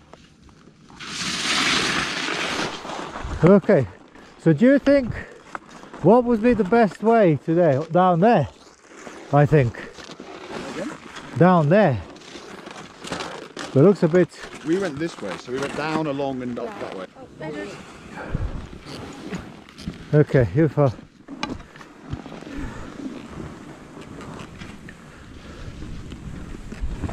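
Skis scrape and hiss over snow close by.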